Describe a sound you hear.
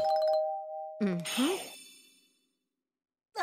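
A bright magical chime sparkles and rings out.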